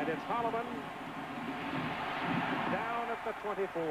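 Football players crash together in a tackle.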